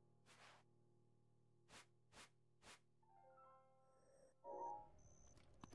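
Soft electronic menu blips and chimes sound.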